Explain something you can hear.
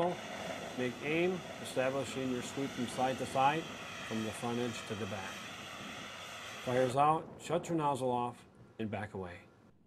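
A fire extinguisher sprays with a loud rushing hiss.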